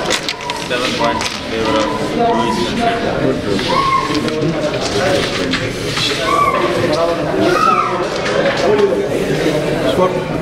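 Carrom pieces clack and rattle as hands gather them on a board.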